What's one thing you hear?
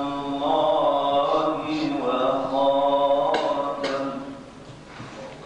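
A man chants in a sustained, melodic voice through a microphone.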